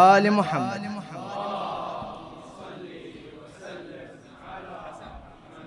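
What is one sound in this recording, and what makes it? A crowd of men murmurs softly.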